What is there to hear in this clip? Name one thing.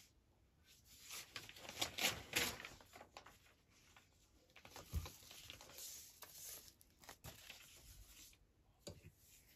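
Paper rustles and crinkles as a hand handles it.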